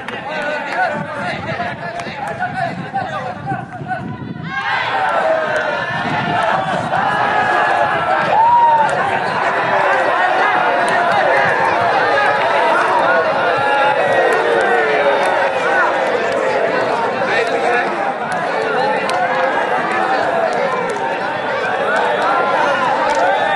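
A large crowd of young men and women chatter and call out together outdoors.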